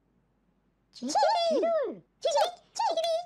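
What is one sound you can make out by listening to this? A high, playful toy-like voice squeaks and chirps.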